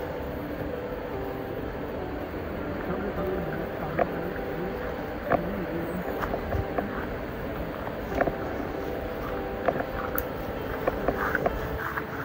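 Tall grass rustles as a person pushes through it.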